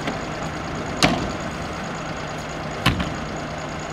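Car doors slam shut.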